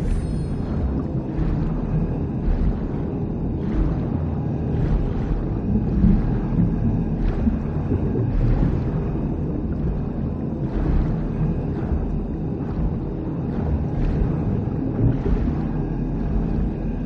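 Footsteps thud at a steady pace.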